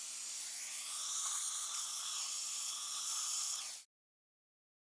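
A suction tube hisses loudly as it draws up fluid.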